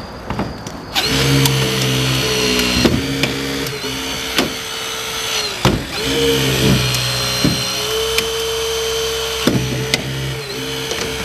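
A battery-powered hydraulic cutter whines and hums steadily as it runs.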